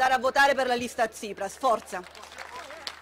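A young woman speaks into a microphone over a loudspeaker outdoors.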